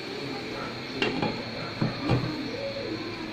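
A glass lid clinks against a pan.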